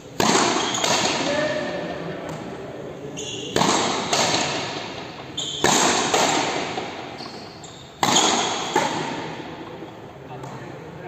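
Racket strokes and a frontenis ball smack off a wall, ringing in a large echoing court.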